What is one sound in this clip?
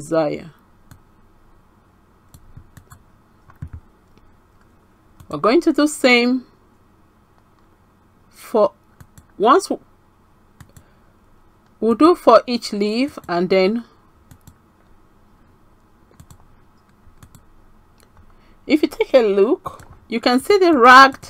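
A woman speaks calmly into a nearby microphone, in short phrases with pauses.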